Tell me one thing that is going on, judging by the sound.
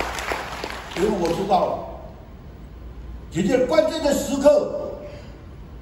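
A man speaks slowly through a microphone and loudspeakers in a large echoing hall.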